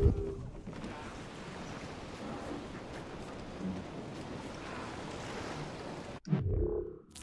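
Wind blows over open sea.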